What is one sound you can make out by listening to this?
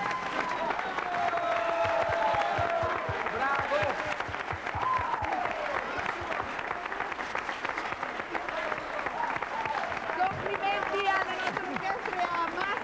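An audience claps along.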